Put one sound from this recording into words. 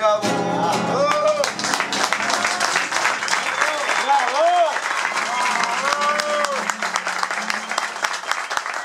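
Men and women cheer and call out over the applause.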